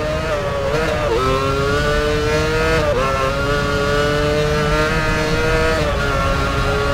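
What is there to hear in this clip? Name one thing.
Gears shift with sudden jumps in the engine's pitch.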